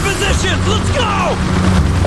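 A helicopter's rotor thumps and drones overhead.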